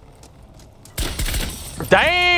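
Wooden boards splinter and break under gunfire.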